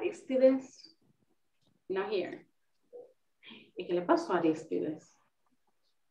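A woman speaks with animation into a headset microphone, heard through an online call.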